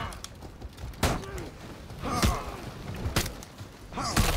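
Metal weapons clash and strike with sharp impacts.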